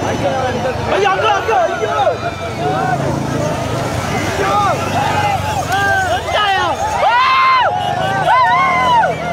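A large outdoor crowd shouts and cheers excitedly.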